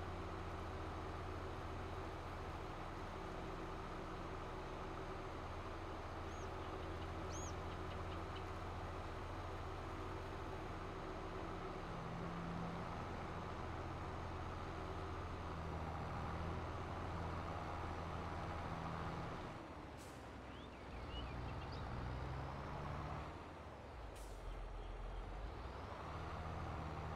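A tractor engine rumbles steadily as it drives along.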